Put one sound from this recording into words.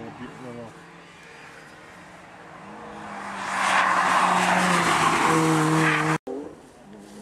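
A small car's engine revs hard and roars past close by.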